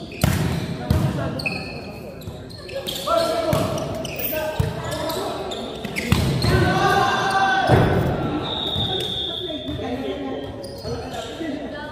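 A volleyball is hit with sharp smacks that echo in a large hall.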